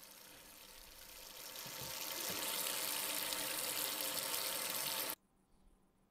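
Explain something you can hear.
Water splashes from a tap into a sink.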